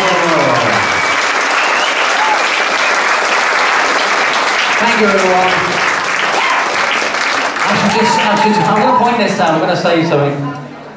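A live band plays an upbeat swing tune.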